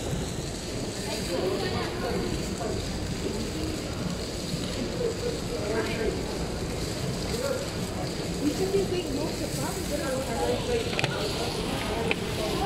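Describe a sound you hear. A fountain jet splashes steadily into a pool.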